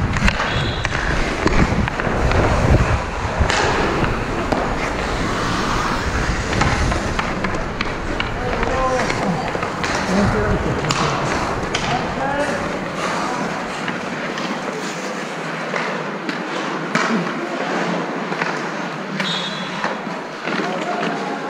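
Skate blades scrape and hiss across ice.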